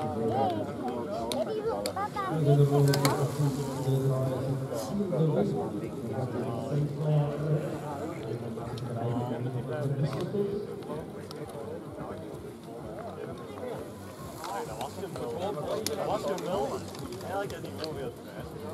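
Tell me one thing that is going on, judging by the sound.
A crowd of spectators chatters in the background outdoors.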